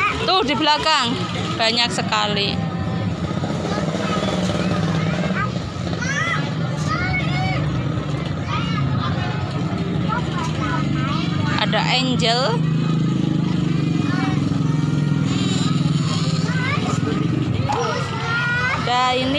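A crowd of young people chatters and calls out nearby, outdoors.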